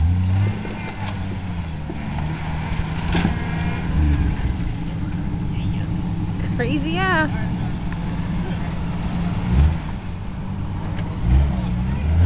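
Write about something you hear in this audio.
A jeep engine idles with a low, steady rumble.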